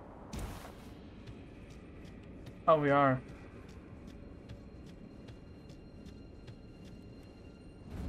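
Footsteps crunch steadily on gravelly ground.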